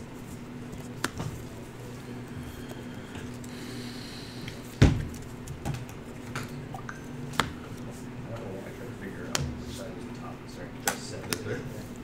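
Playing cards are placed and tapped on a soft mat with light clicks.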